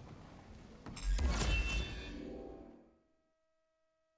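A loud swooshing chime rings out, then fades to silence.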